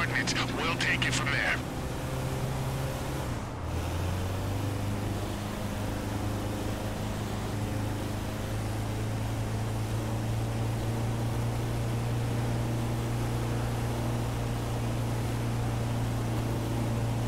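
A van engine hums steadily as it drives along a highway.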